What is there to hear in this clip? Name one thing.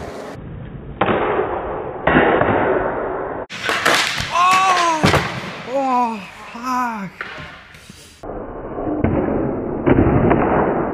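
A skateboard clacks sharply against the ground.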